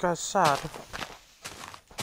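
Leaves rustle and break as a block is mined.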